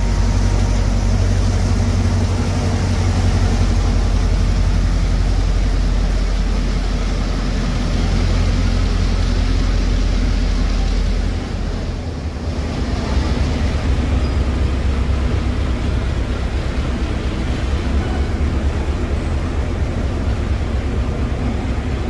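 A diesel locomotive engine rumbles deeply as it pulls slowly away.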